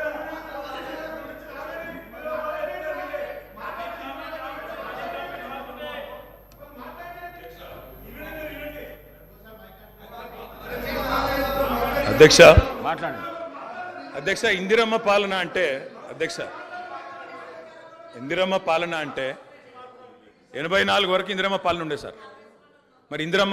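An elderly man speaks firmly into a microphone in a large hall.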